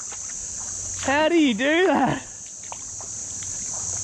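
Footsteps squelch through wet mud and shallow water.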